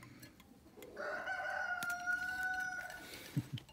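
A small bird gives a thin, drawn-out call close by.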